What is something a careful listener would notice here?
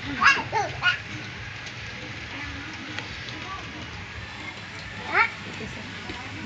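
A young child squeals and shouts excitedly nearby.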